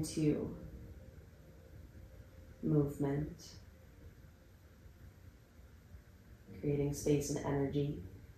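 A young woman speaks calmly and softly in short phrases, close to a microphone.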